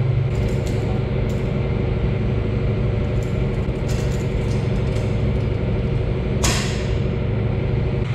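Metal pipe fittings clink and click as a coupling is tightened by hand.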